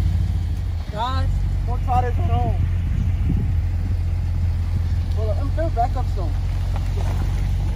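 A man speaks with animation from a truck window nearby.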